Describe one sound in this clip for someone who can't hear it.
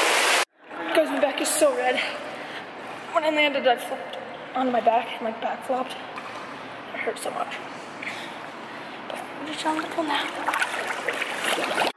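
Water laps and sloshes around a swimmer.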